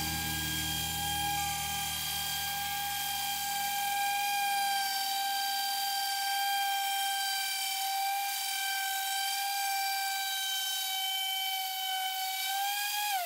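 An electric orbital sander whines steadily as it scrubs across wood.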